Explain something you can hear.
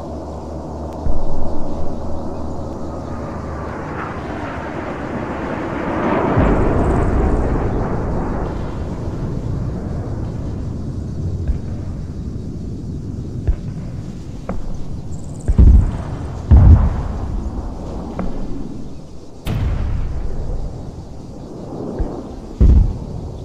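A jet engine roars overhead, rising and falling as the aircraft passes.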